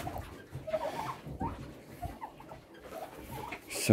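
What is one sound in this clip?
Turkeys gobble and chirp nearby.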